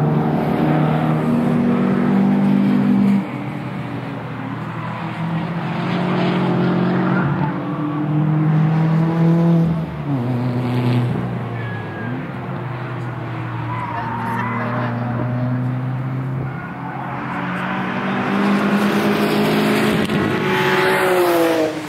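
Racing car engines roar and rev around a track in the distance.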